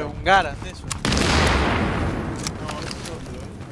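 An explosion booms and rumbles away.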